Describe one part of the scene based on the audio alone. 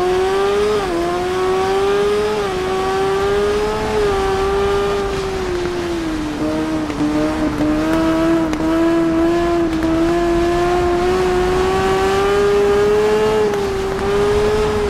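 Wind rushes past at speed.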